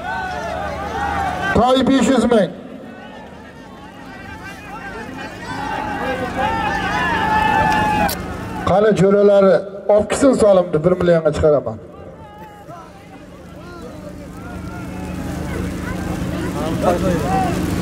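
Men shout and call out loudly outdoors.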